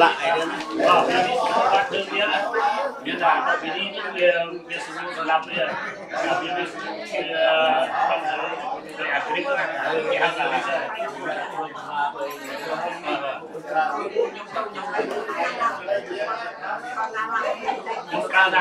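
A group of men and women chant together.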